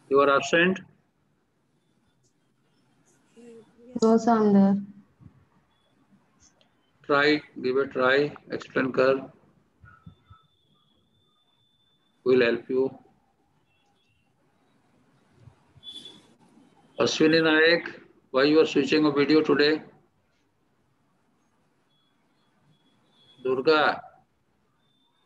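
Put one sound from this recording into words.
A man speaks in short, calm phrases over an online call.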